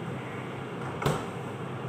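A refrigerator door thumps shut.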